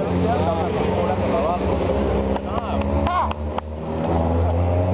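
A racing car engine roars loudly and changes pitch as the car speeds past.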